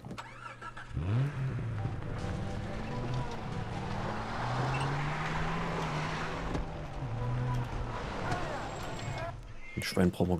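A car engine hums and revs as a vehicle drives along a dirt track.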